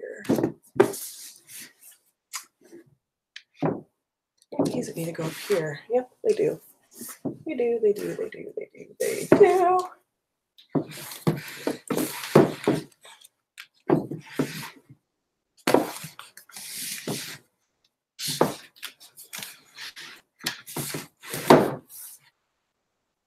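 Books slide and knock against a shelf.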